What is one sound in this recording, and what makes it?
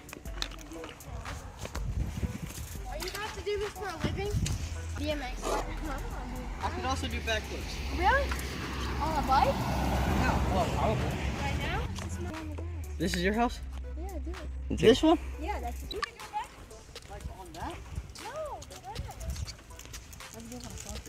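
Young boys talk and call out nearby outdoors.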